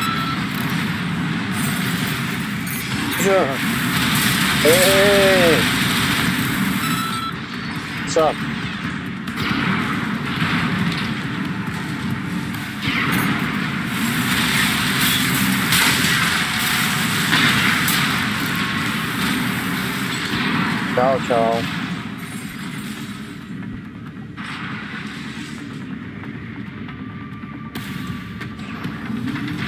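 Mechanical engines hum and thrusters roar.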